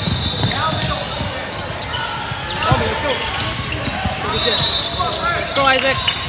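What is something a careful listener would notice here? Young players and spectators shout and call out in a large echoing gym.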